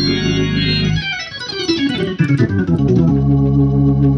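An organ plays a fast run sweeping down the keys.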